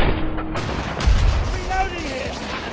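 A rocket explodes with a deep boom.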